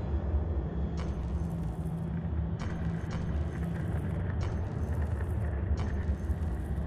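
Short menu clicks sound as a cursor moves between points.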